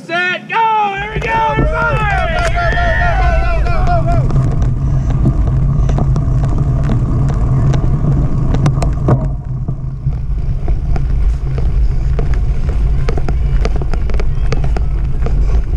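Wind buffets loudly against a bicycle riding fast outdoors.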